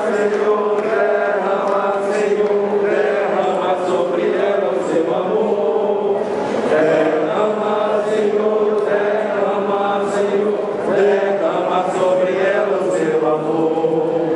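An elderly man prays aloud fervently into a microphone, heard through loudspeakers.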